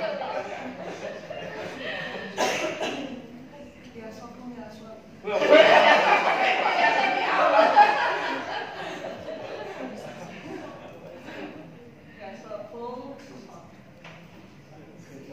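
Several adults talk and laugh together in a room.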